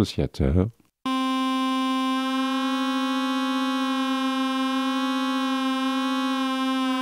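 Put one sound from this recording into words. A synthesizer holds a steady, buzzing note.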